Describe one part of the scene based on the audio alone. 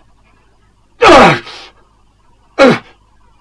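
A man lets out loud cries that drop in pitch.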